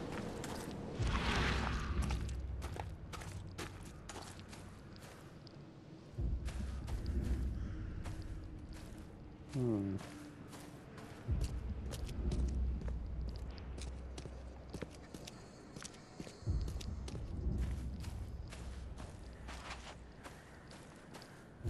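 Footsteps tread steadily over grass and stone.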